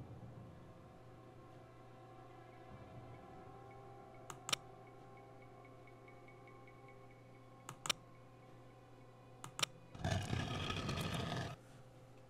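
Tiles click sharply, one at a time.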